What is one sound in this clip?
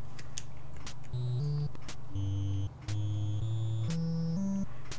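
Chiptune game music plays in short beeping notes.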